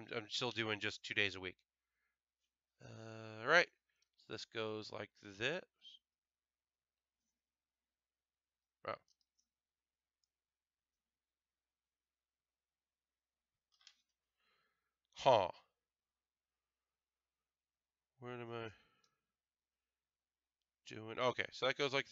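A man talks casually and close to a microphone, in bursts with pauses.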